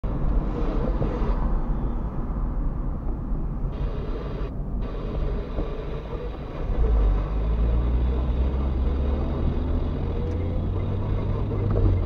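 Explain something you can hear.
Tyres roll on asphalt.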